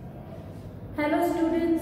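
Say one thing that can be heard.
A young woman speaks clearly and close by.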